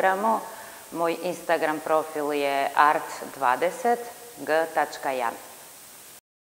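A woman speaks calmly and clearly into a microphone close by.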